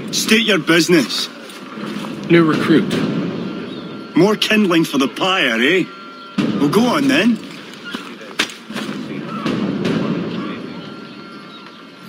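A man speaks gruffly, close by.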